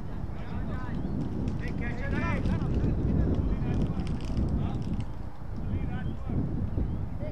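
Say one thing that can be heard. Young players call out to each other from across an open field.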